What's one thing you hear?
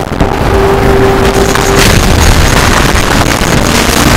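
A fiery explosion booms and crackles.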